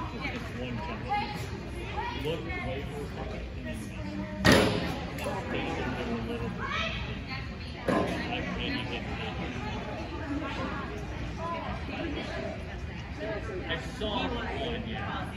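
A woman calls out encouragement to a dog in a large echoing hall.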